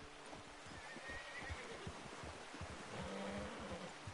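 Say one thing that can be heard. Horse hooves splash through a shallow stream.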